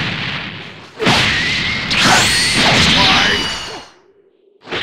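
Sharp whooshes and hits burst out in quick succession.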